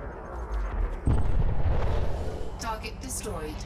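A spaceship explodes with a deep boom.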